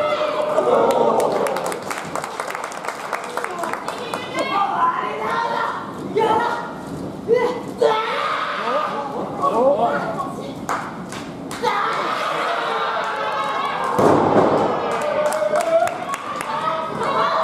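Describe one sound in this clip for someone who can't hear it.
Young women shout and grunt with effort nearby, in a large echoing hall.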